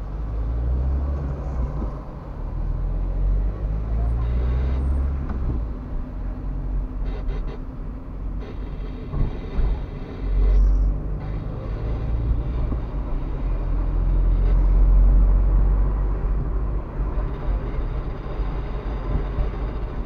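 A car engine hums steadily from inside the car while driving.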